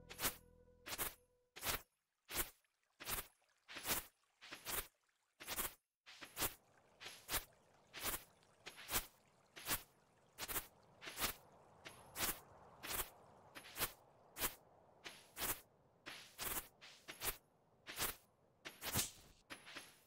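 Footsteps crunch on snow at a steady walking pace.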